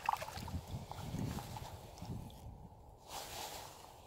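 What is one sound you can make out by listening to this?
Dry reeds brush and rustle against a kayak.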